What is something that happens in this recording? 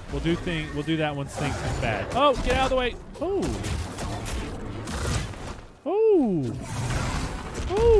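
A large creature roars.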